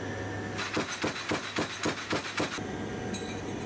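A machine clatters rapidly for a moment.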